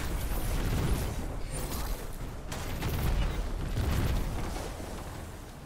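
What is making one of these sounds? Explosions boom and gunfire rattles in a video game.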